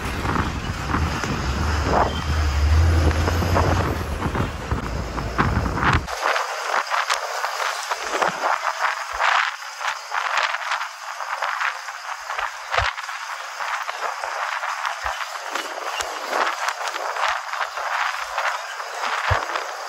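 Wind rushes loudly past an open bus window.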